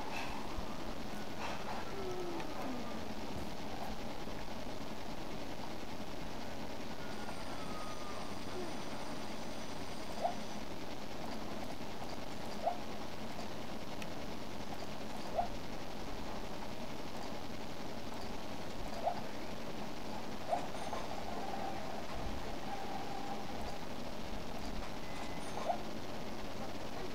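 A video game's sounds play faintly from a television loudspeaker, with short blips now and then.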